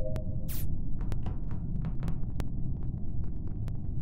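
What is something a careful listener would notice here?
Light footsteps tap quickly across a hard floor.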